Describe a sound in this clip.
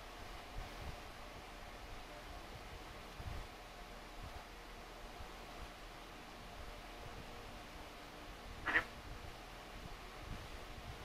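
An electric fan hums steadily nearby.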